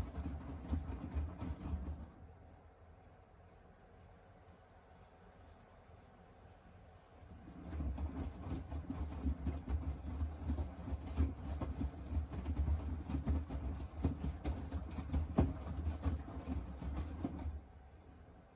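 A washing machine drum turns and hums with a low rumble.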